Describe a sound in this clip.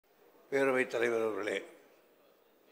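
An older man speaks briefly over a microphone.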